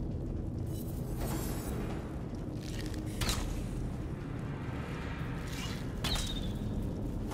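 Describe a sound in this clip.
Magic blasts whoosh and crackle in short bursts.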